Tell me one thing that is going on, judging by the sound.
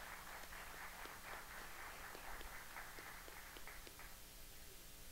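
An audience applauds in a large room, then stops.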